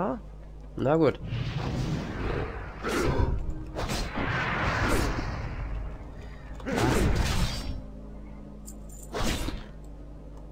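Weapons clash and thud in a fierce fight.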